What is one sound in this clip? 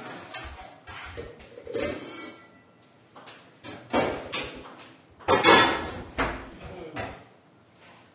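Utensils clatter against pots and dishes.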